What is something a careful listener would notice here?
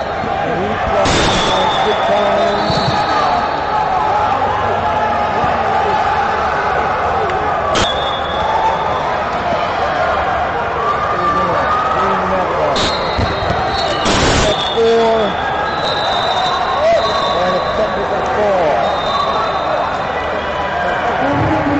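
A crowd chatters throughout a large echoing hall.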